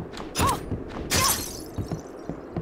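A magic spell bursts with a sharp crackling whoosh.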